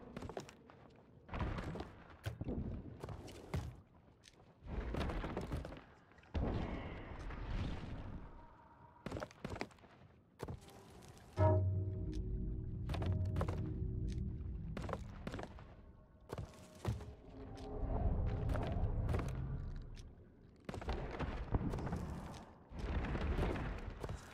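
Short soft clicks sound as items are moved between storage slots.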